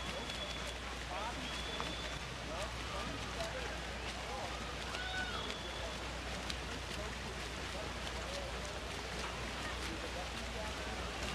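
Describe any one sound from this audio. Swimmers splash steadily through the water.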